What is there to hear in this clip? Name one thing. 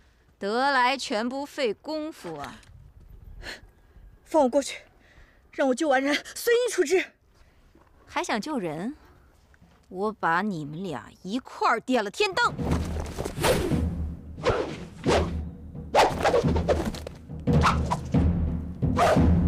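A young woman speaks tensely and loudly nearby.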